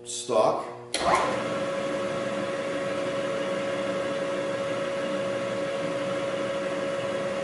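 A milling machine motor starts up and hums steadily with a high whine.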